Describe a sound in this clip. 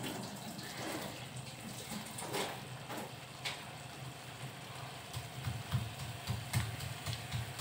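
A thick sauce bubbles and simmers in a pan.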